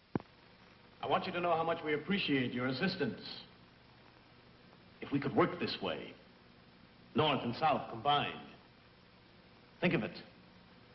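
A man speaks calmly, close by, with pauses between phrases.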